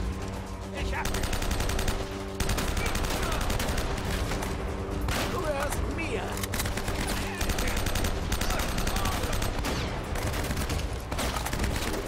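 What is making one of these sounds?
Rapid bursts of automatic rifle fire crack over and over.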